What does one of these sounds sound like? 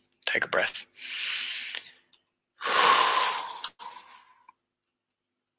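A man exhales loudly through pursed lips.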